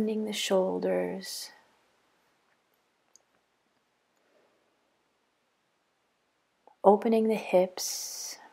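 A woman speaks calmly and slowly close by, with long pauses.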